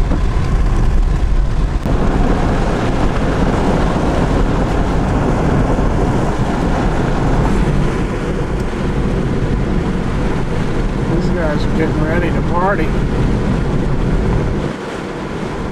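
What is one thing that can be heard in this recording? A car rumbles steadily along a road, heard from inside.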